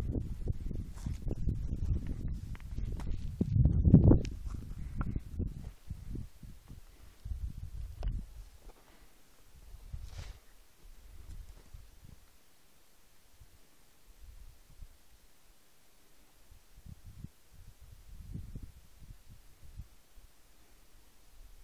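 Wind gusts across an open mountaintop, rumbling and buffeting.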